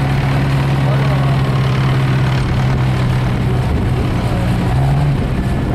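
A car engine idles and rumbles steadily nearby.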